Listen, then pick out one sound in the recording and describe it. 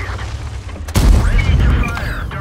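A shell explodes on a tank with a crackling burst.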